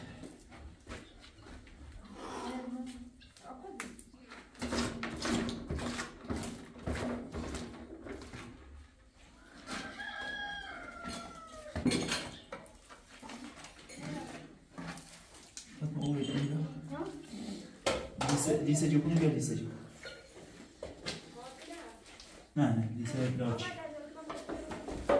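A trowel scrapes wet plaster across a wall.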